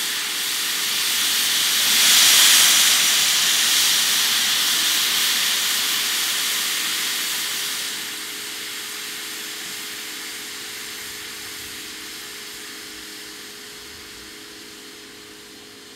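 A standing steam locomotive hisses steam from its cylinder cocks, and the hiss slowly fades.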